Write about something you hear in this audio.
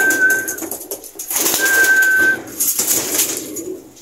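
A pigeon flaps its wings in a brief flurry.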